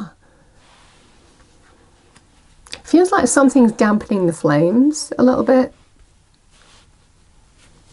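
Playing cards slide and tap softly.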